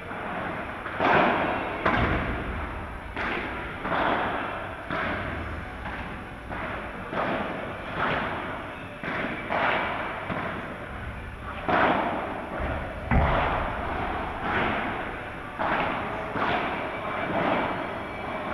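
A ball bounces on a hard court and off glass walls.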